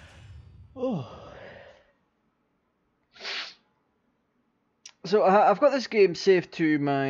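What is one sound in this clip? A young man speaks close into a microphone.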